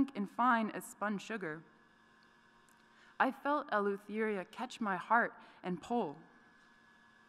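A young woman speaks calmly into a microphone in a large echoing hall.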